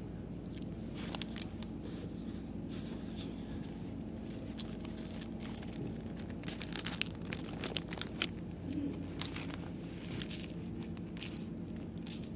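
A young man chews and crunches food close by.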